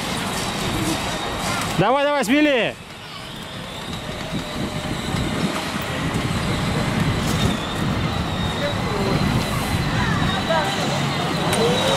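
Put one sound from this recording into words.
Men, women and children chatter in a crowd nearby, outdoors.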